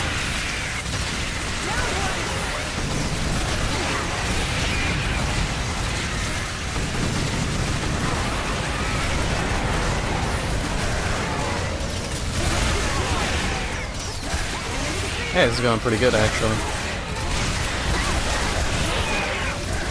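Giant insects screech and chitter.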